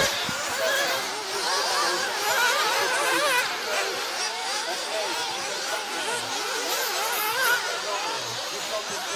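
Small remote-controlled model cars whine and rev as they race around a dirt track.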